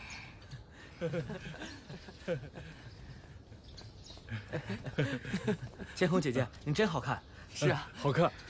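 A young woman laughs and speaks warmly.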